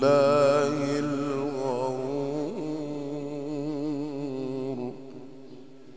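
A man chants in a long, wavering melodic voice through a microphone, then stops.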